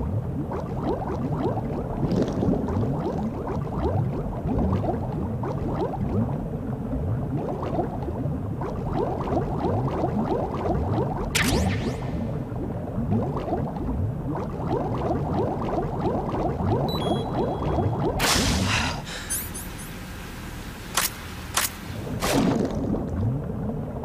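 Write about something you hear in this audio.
Bubbles gurgle and burble underwater.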